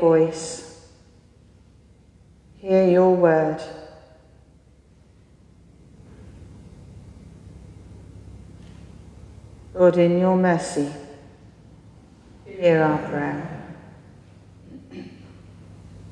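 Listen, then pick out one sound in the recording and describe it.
A man chants slowly in a large echoing hall, in short sung phrases with pauses between.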